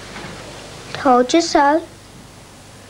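A young boy speaks playfully nearby.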